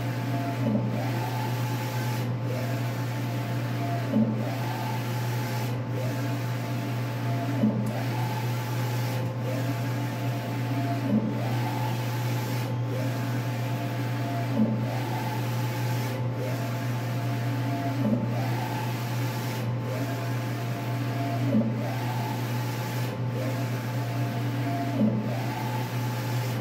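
A printer carriage whirs back and forth in a steady rhythm.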